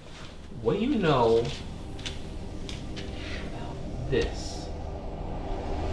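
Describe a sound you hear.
Paper rustles as a notebook is set down and its pages are turned.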